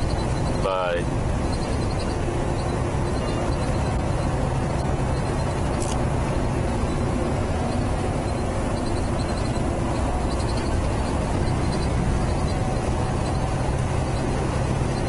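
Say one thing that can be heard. A truck engine rumbles steadily inside the cab while driving.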